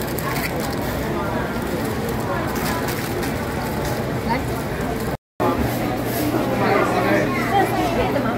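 A crowd of people chatters nearby.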